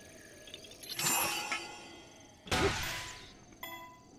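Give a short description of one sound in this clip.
A hammer strikes a boulder with a heavy thud.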